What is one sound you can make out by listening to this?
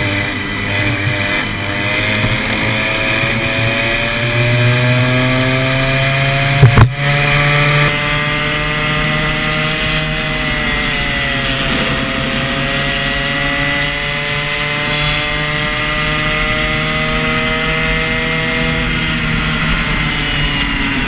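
A kart engine buzzes loudly close by, rising and falling in pitch as it speeds up and slows down.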